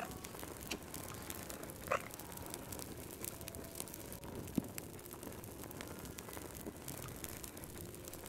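A fire crackles and pops softly in a fireplace.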